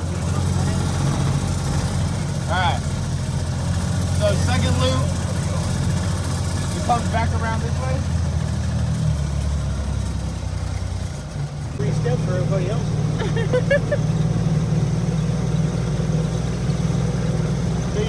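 A small cart's motor hums steadily as it rolls along.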